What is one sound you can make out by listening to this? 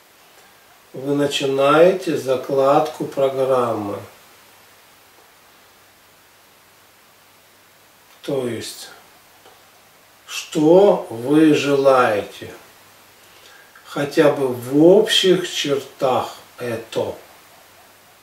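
A man chants slowly and calmly.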